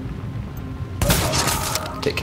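A rifle fires a single loud shot that rings out.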